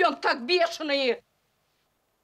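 A middle-aged woman exclaims in alarm close by.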